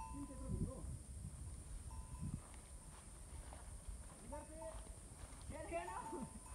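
Dry undergrowth rustles and crackles as animals scuffle.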